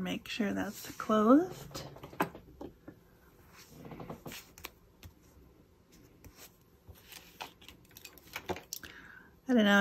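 Hands brush and handle a sheet of paper.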